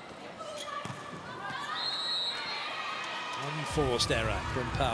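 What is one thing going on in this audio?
A volleyball is smacked hard.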